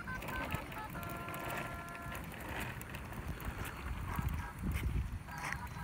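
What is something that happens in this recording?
A toy plays short electronic beeping tones.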